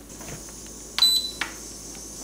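A rice cooker button beeps.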